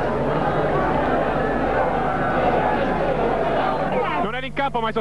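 A large crowd cheers and chants loudly in an open stadium.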